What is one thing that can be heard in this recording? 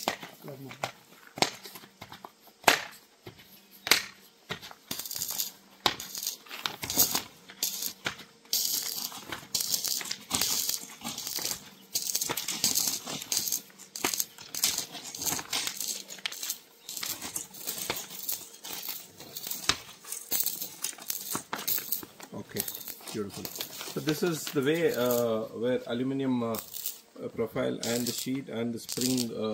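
Plastic sheeting crinkles and rustles as it is handled.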